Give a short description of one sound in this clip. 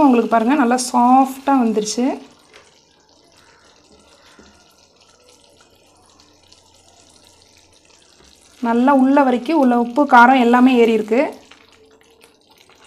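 A wooden spatula stirs and scrapes through thick bubbling sauce in a pan.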